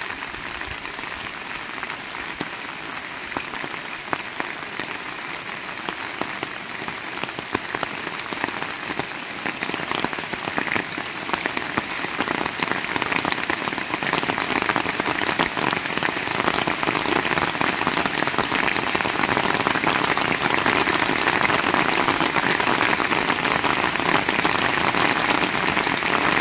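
Raindrops splash on a wet ground.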